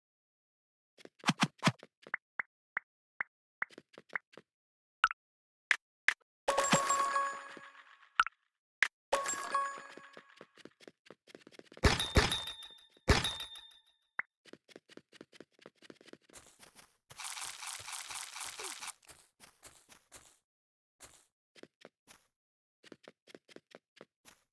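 Game footsteps tap quickly on hard blocks.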